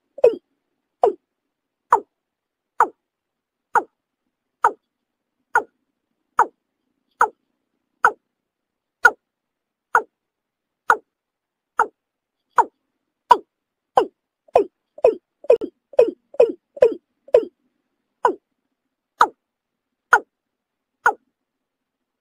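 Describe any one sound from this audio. A bird gives short, sharp calls again and again, faster for a moment near the end.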